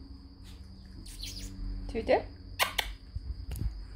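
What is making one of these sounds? A puppy yelps and whimpers close by.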